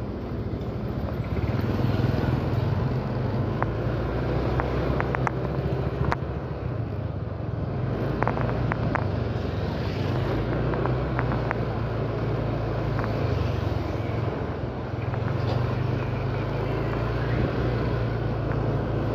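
Motor scooter engines hum as scooters ride along a street.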